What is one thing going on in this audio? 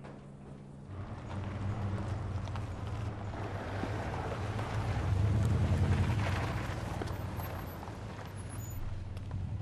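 A car engine rumbles closer as a car drives up and stops.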